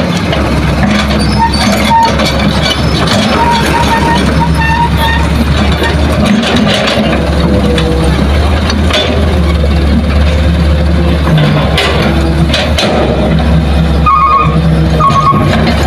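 A dump truck's diesel engine rumbles steadily as it drives slowly away over rough ground.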